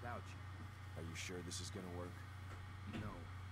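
A man asks a question in a low voice.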